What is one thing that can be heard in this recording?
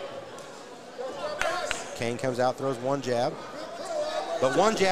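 A man shouts loudly from the crowd in a large echoing hall.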